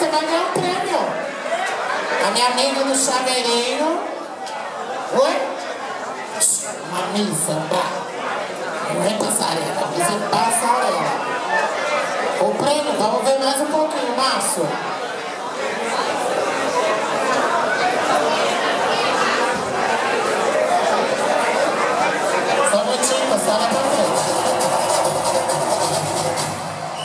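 A woman talks and sings through a microphone over loudspeakers in a large hall.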